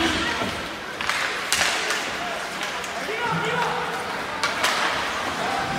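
Hockey sticks clack sharply against a puck now and then.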